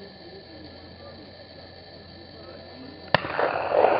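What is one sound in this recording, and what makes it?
A shotgun fires once outdoors, the blast echoing off nearby woods.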